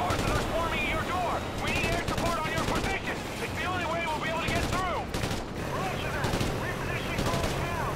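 Gunfire cracks in short bursts nearby.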